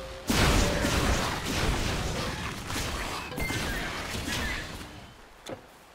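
Weapons clash in a short fight.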